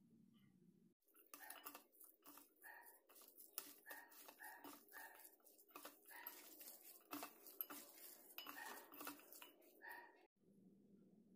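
Hands squish and mix a moist crumbly mixture in a metal bowl.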